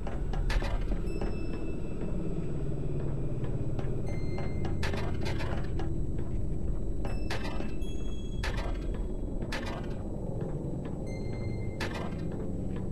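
Footsteps thud on a hard floor at an uneven pace.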